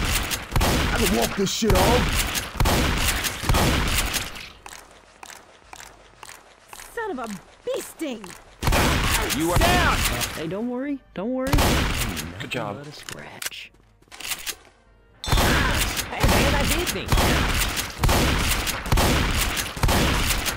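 Shotguns fire loudly in rapid bursts, over and over.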